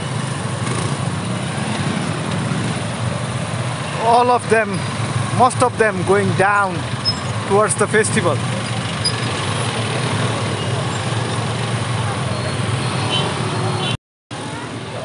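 Motorbike and car engines rumble steadily in slow heavy traffic.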